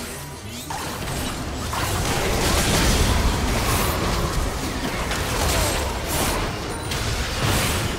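Video game combat sounds with magic spell blasts play.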